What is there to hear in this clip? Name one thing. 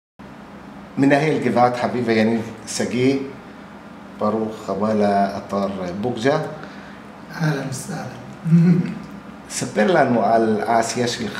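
A middle-aged man speaks calmly and cheerfully close to a microphone.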